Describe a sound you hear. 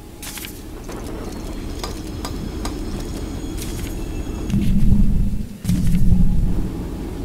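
Short clicks and chimes sound in quick succession.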